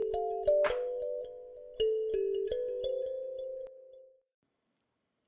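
A ukulele plucks a short, bright tune that rings out and fades.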